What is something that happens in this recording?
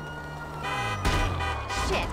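A car slams hard into a person with a heavy thud.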